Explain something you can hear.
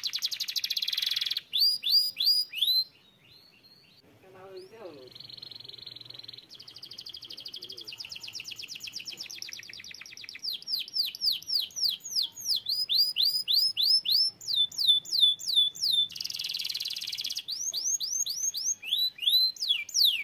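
A canary sings loudly and close by, in fast trills and rising and falling whistles.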